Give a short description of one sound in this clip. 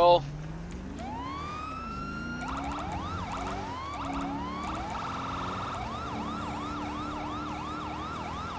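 A police siren wails, rising and then whooping rapidly.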